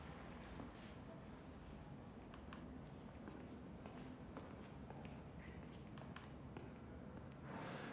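A man taps the keys of a mobile phone.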